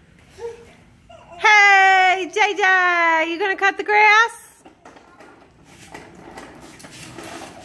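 A toy lawn mower rattles as a toddler pushes it.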